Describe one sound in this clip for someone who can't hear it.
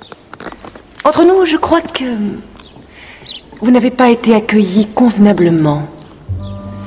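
A woman speaks coolly and firmly close by.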